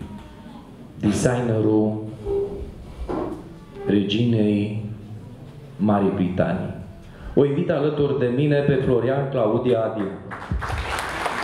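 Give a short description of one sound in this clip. A middle-aged man speaks into a microphone over loudspeakers in a large hall.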